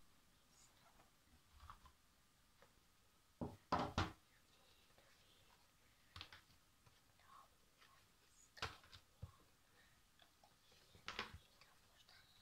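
Cardboard game sheets rustle and tap as hands sort them.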